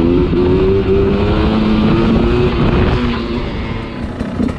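A dirt bike engine revs up close and accelerates.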